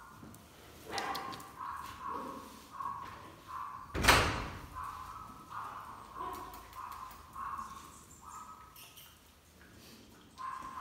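Dog claws click and patter on a hard tile floor.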